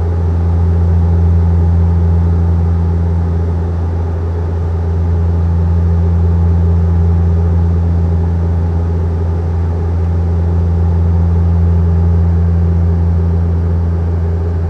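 A jet airliner's engines drone in a steady, deep hum from inside the cabin.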